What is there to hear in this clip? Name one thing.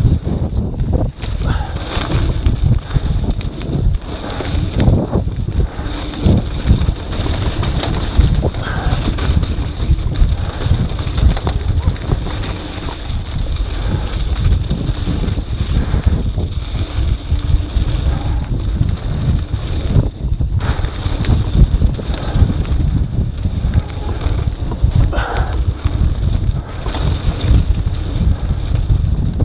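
Wind buffets loudly against a moving bike rider.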